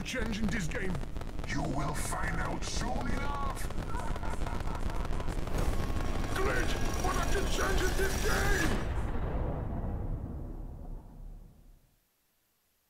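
Electronic game music and glitchy effects play.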